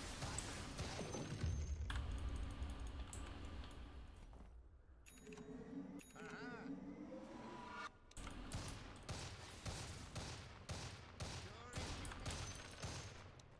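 Clashing blows and magic blasts ring out in quick bursts.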